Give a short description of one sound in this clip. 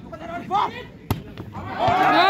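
A volleyball is spiked with a sharp slap.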